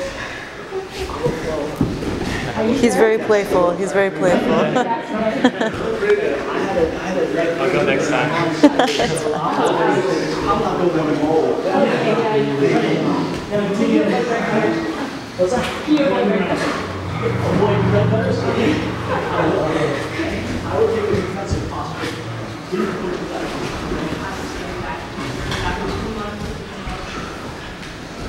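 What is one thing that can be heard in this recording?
Bodies thud and shuffle on a padded mat.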